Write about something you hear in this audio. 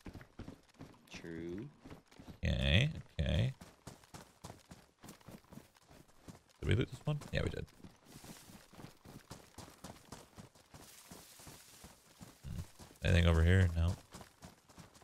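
A young man speaks with animation close to a microphone, in short bursts.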